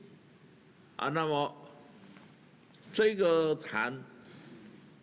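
An elderly man speaks slowly and deliberately into a microphone, in short phrases with pauses.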